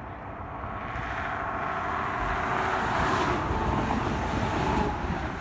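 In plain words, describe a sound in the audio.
A truck roars past close by.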